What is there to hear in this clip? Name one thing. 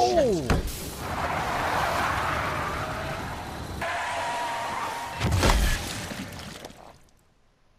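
Water splashes hard under a spinning tyre.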